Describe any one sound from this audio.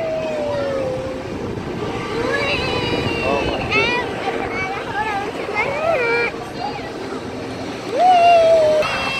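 Children squeal and shout excitedly.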